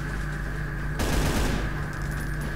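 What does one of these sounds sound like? A gun fires a burst of shots.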